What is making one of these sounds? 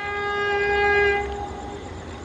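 A train horn blows a long note in the distance.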